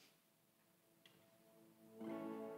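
An electric guitar starts playing softly.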